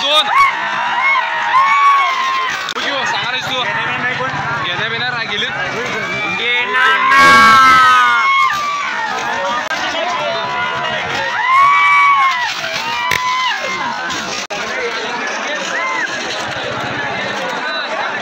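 A large outdoor crowd cheers and shouts excitedly.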